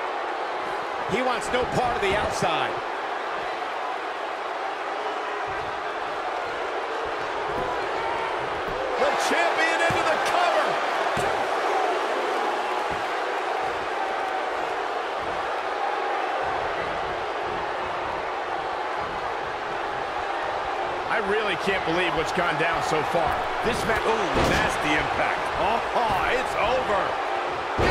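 Bodies thud hard onto a ring mat.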